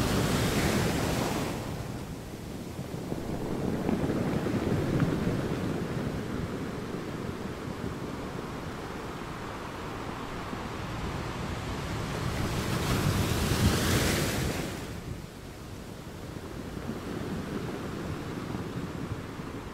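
Ocean waves crash and roar against rocks.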